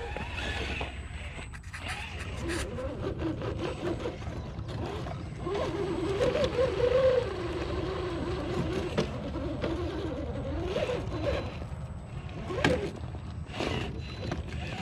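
Small electric motors whine as toy trucks crawl over rocks.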